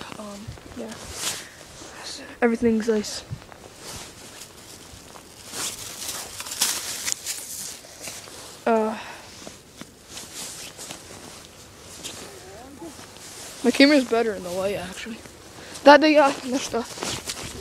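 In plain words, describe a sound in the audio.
Boots crunch through snow.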